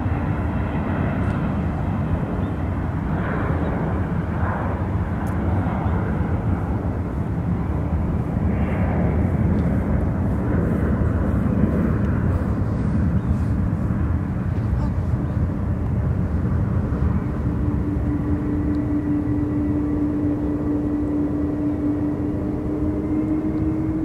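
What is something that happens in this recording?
A jet airliner's engines roar loudly as it rolls along a runway in the distance.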